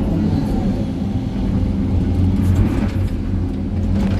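Rocks tumble and clatter into a truck bed.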